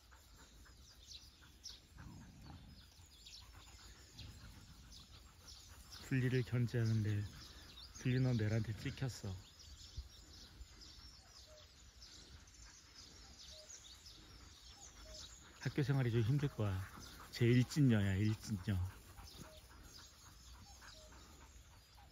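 Dogs' paws patter on grass as they run and play.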